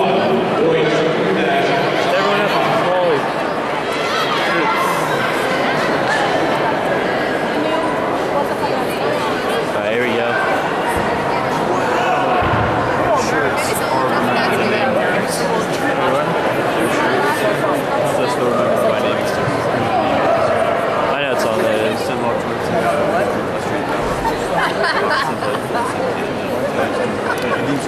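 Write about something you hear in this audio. A crowd of spectators chatters loudly in a large echoing indoor hall.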